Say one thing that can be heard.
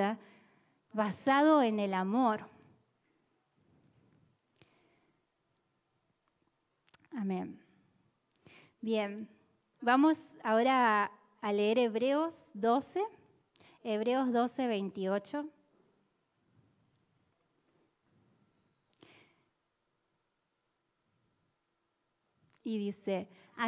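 A young woman sings into a microphone through loudspeakers, in phrases with pauses.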